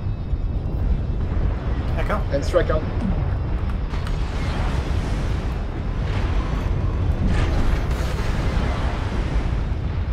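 Weapons fire and explosions burst in loud blasts.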